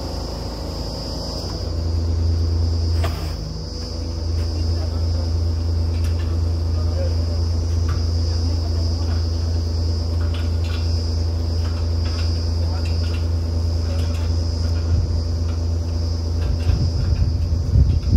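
Metal clanks as men handle drill pipes.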